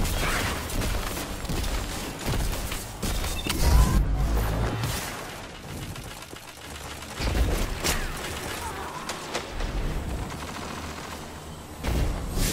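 Gunshots crack and bang in rapid bursts.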